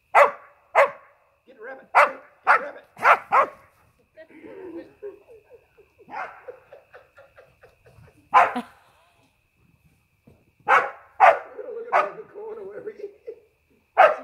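A dog barks loudly and sharply, close by.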